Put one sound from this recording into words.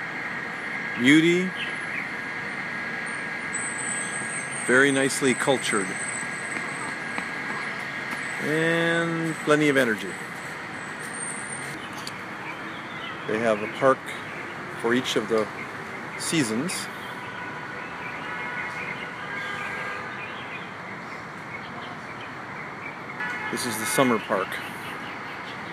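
A young child shouts and calls out nearby, outdoors.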